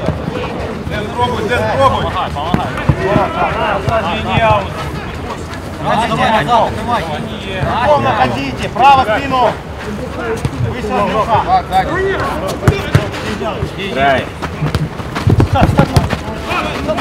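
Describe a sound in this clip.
Men shout and call out to each other across an outdoor pitch.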